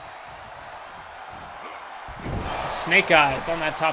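A body slams heavily onto a wrestling mat with a thud.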